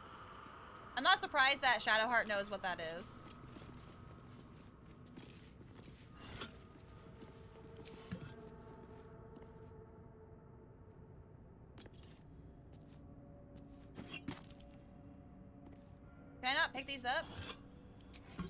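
A young woman talks briefly into a close microphone.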